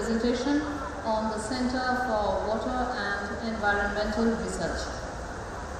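A woman speaks calmly through a microphone, heard over loudspeakers.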